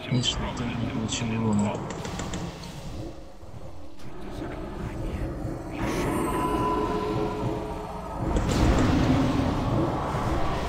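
Magic spell effects whoosh and crackle in a battle.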